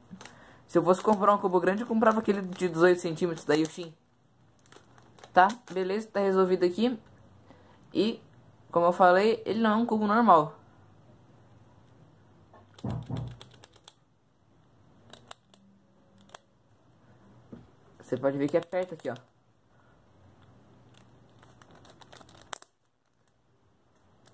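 Plastic puzzle cube clicks and clacks as its layers are twisted.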